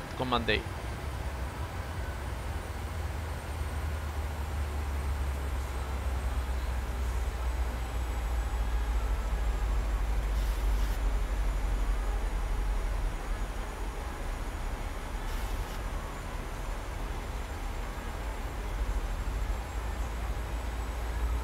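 Jet engines hum steadily with a low, constant roar.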